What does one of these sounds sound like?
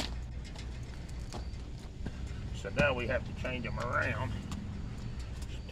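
A bicycle frame rattles and clicks as a man climbs onto it.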